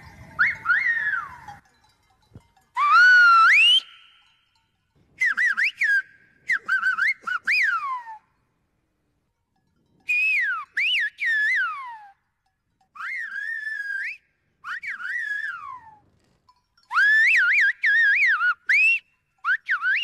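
A man whistles loudly through his fingers in rising and falling calls.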